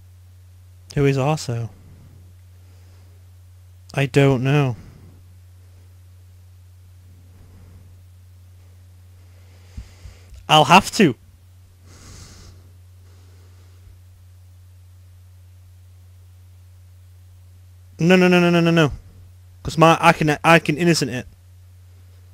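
Short electronic game tones ring out now and then.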